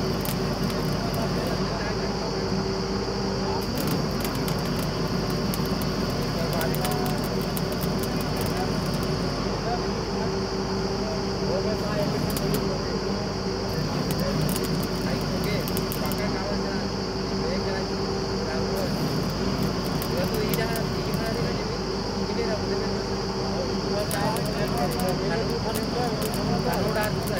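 A drilling rig's diesel engine runs with a loud, steady drone outdoors.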